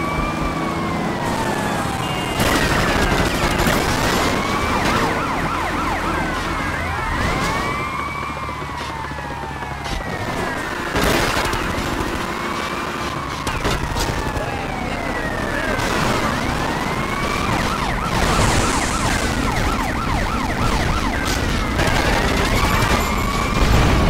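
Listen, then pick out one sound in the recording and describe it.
A car engine roars steadily as a car speeds along.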